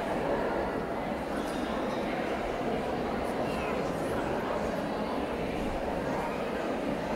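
A live band plays through loudspeakers in a large echoing hall.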